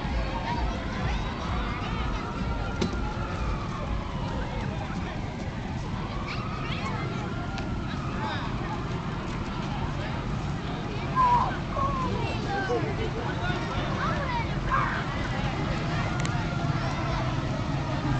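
A crowd of onlookers chatters and calls out outdoors.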